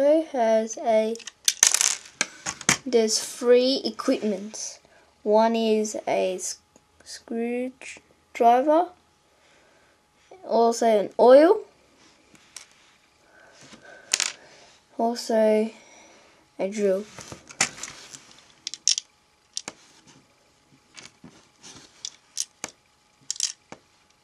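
Plastic toy pieces click and rattle as hands handle them.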